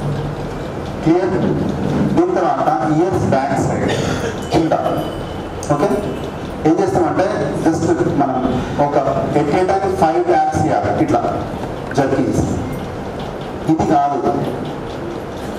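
A man speaks with animation through a headset microphone.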